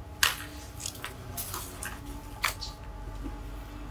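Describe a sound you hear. Silky fabric rustles as it is shaken out.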